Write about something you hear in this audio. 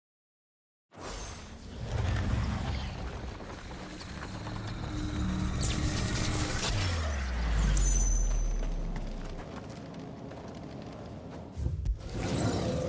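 A deep, whooshing rumble swirls steadily.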